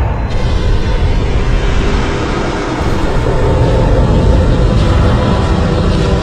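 A loud, deep rumbling roar goes on steadily.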